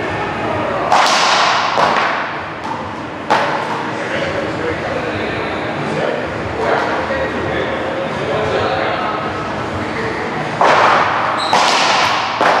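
A ball smacks sharply against a wall and echoes through a large hard room.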